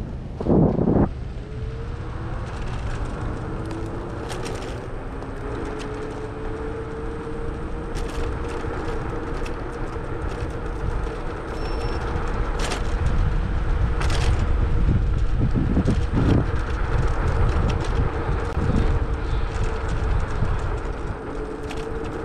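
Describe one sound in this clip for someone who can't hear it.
A motorcycle engine hums steadily as the bike rides along a road.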